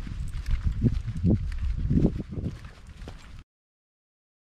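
A dog's paws patter on pavement.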